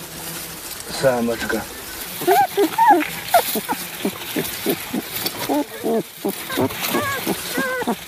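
Puppies whimper and squeal close by.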